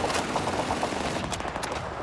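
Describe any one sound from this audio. A rifle's metal parts click and clack during reloading.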